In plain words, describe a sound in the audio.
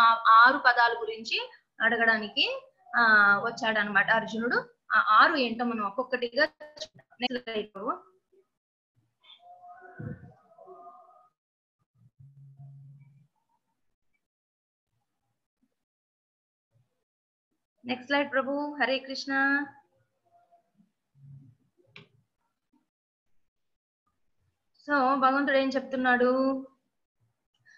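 A woman speaks calmly through an online call, pausing between phrases.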